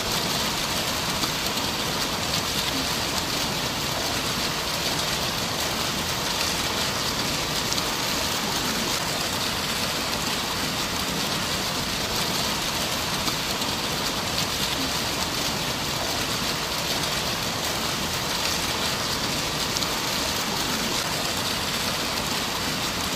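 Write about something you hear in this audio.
Water from fountain jets gushes and splashes steadily into a shallow channel.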